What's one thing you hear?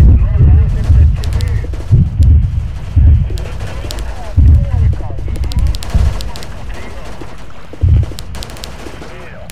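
Explosions boom repeatedly over open water.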